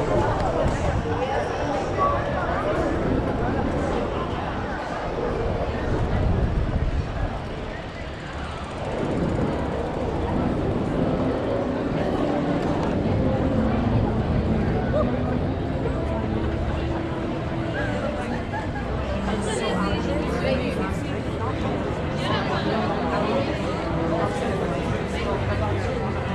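A crowd of people chatters in the distance.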